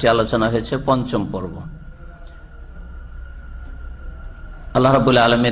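A man speaks steadily into a microphone.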